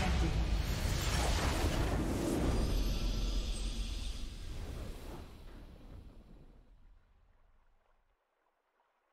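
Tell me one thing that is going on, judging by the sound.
A triumphant orchestral fanfare swells and then fades away.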